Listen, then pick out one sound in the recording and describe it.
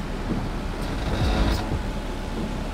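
Bus doors open with a short pneumatic hiss.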